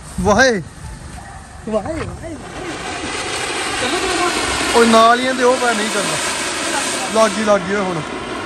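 A firework fountain hisses and crackles loudly as it sprays sparks.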